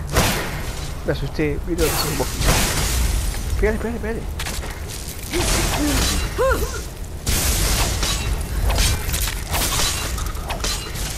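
A monster snarls and shrieks.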